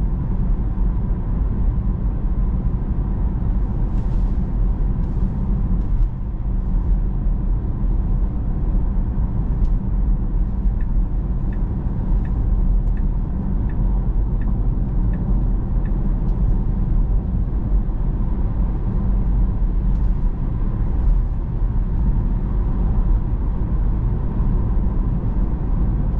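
A car drives steadily along a road, its tyres and engine rumbling low inside the cabin.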